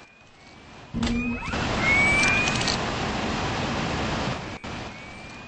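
A jet thruster roars loudly and steadily.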